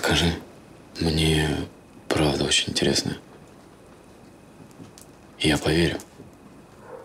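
A young man answers in a low, earnest voice up close.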